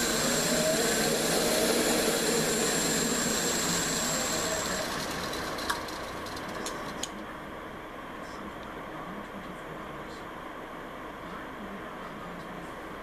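A lathe motor whirs steadily.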